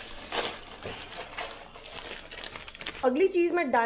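A plastic packet crinkles.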